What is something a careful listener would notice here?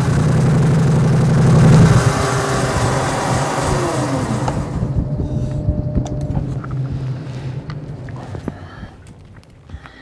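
A motorcycle engine roars loudly, then revs down and idles away.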